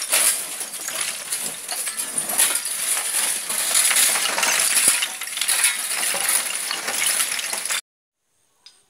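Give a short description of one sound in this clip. Shovels scrape loudly through loose stones and rubble.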